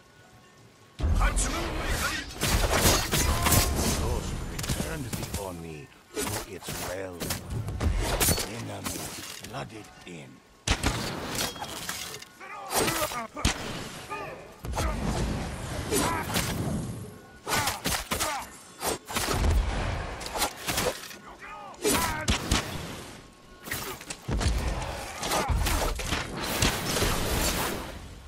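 Swords clash and slash rapidly in a fierce fight.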